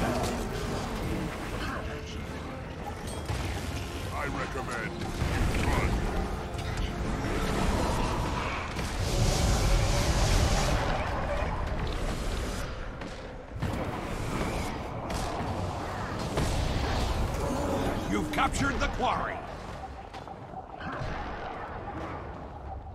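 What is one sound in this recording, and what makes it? Magic spells crackle and blows clash in a fast fight.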